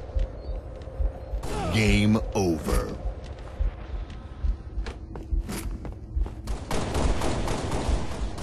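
Heavy footsteps thud steadily on a hard floor.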